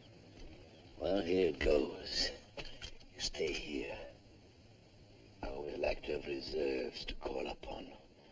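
A man speaks urgently nearby.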